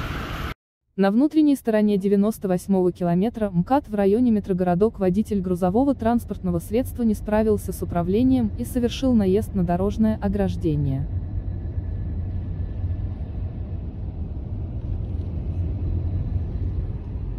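A car engine rumbles low from inside a moving car.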